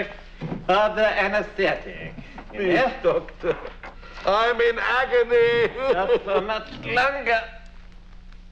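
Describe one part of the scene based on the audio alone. A man sobs loudly and wails.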